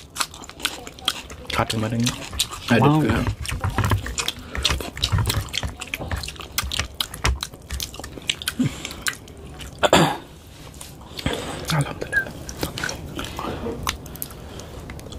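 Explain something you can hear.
Fingers squelch and mix wet rice on a plate.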